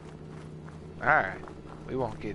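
A dog barks close by.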